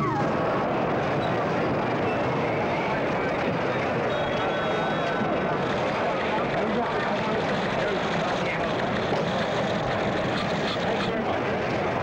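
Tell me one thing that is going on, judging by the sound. A large crowd of men talks and murmurs all at once.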